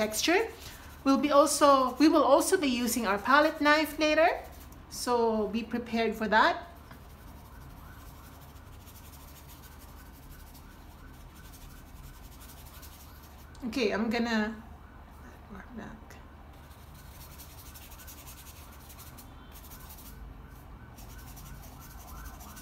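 A paintbrush brushes softly across paper.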